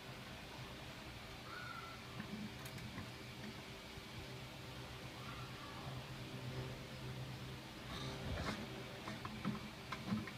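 A thin wire scrapes and clicks against plastic.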